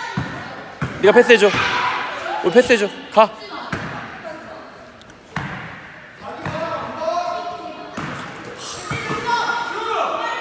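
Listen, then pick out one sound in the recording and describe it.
A basketball bounces on a hard court floor in a large echoing gym.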